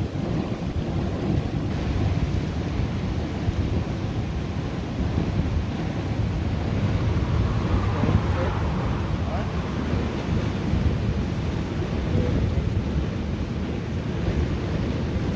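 Oil sizzles and bubbles in a hot pot.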